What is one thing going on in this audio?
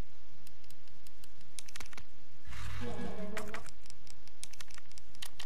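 Short menu clicks tick repeatedly.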